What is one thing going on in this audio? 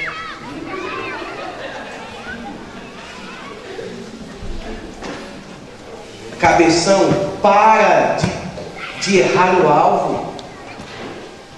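A young man speaks with animation into a microphone, heard through loudspeakers in an echoing room.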